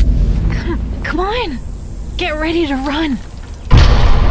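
A young woman speaks in an urgent, hushed voice.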